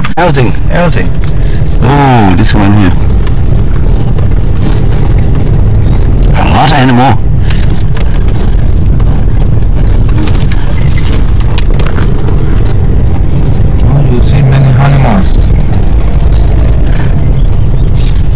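A car rumbles steadily along a road from inside the cabin.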